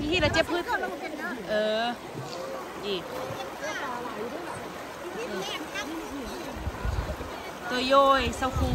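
Several adults talk and call out loudly with animation nearby.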